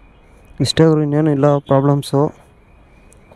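A man speaks briefly, close by.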